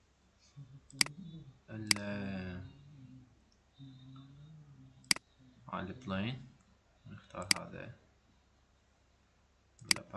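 A computer mouse clicks sharply a few times.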